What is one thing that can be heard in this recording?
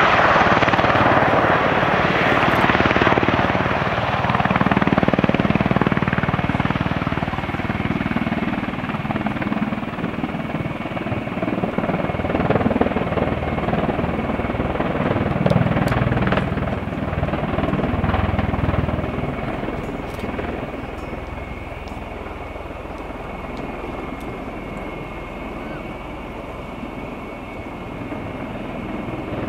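An aircraft's rotors roar and thump loudly as it hovers and slowly descends, fading a little.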